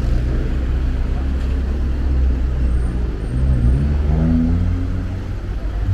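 A small car drives through an intersection.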